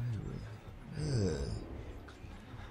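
A man speaks quietly into a close microphone.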